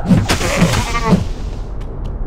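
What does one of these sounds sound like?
A magic spell crackles and whooshes.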